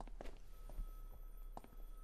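A person sips coffee.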